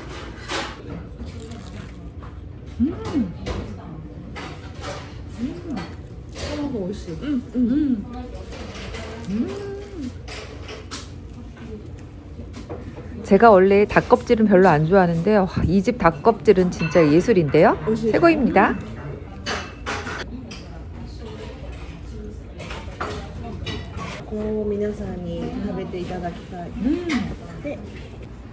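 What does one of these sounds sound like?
A young woman hums with pleasure while chewing.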